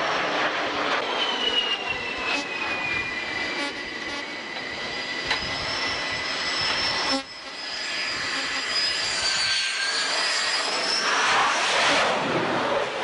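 A jet engine whines loudly as an aircraft approaches and passes close by.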